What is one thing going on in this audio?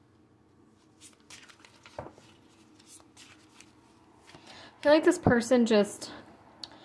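Playing cards shuffle and flick softly.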